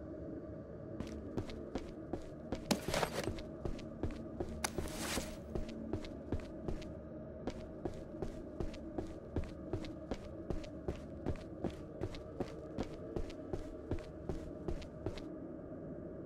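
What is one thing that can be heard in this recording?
Footsteps thud steadily on hollow wooden planks.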